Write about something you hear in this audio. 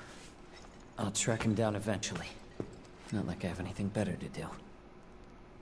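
A young man speaks calmly and casually.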